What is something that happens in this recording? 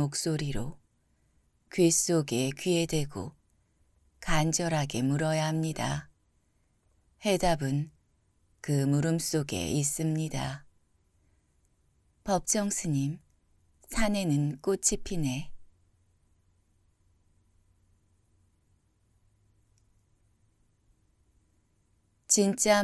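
A man reads aloud calmly and slowly, close to a microphone.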